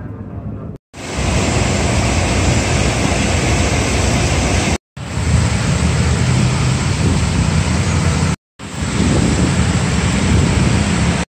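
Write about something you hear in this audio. Fountain water splashes and gushes steadily.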